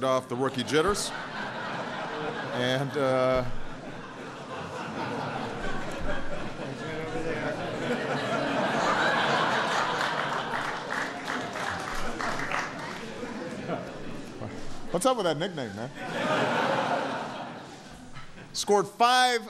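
A crowd laughs and chuckles.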